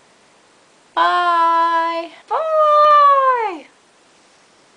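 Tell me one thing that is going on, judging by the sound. A young woman sings out long, high notes in a playful voice.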